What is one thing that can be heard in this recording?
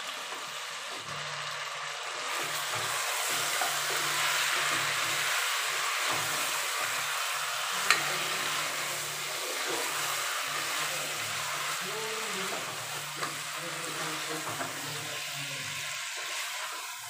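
A wooden spatula scrapes and stirs food in a metal pot.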